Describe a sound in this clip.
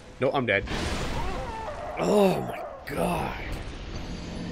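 A huge armoured giant groans and roars.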